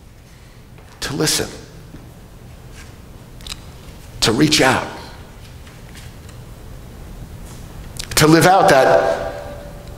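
An older man speaks calmly into a microphone in a large echoing room, with long pauses.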